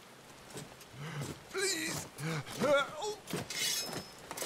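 A wounded man pleads weakly in a strained voice, close by.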